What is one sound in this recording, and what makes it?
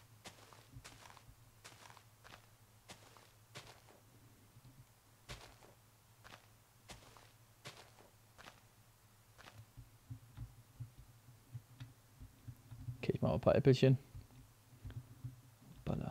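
Footsteps tread softly on grass at a steady walking pace.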